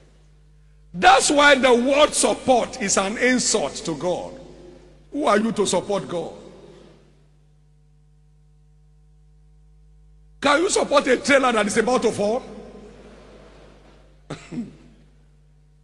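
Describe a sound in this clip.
A man preaches forcefully through a microphone, pausing between phrases.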